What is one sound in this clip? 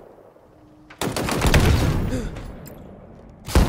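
Gunfire blasts in loud, short bursts.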